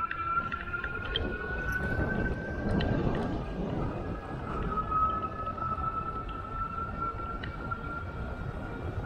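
Wind rumbles steadily, as if outdoors while riding.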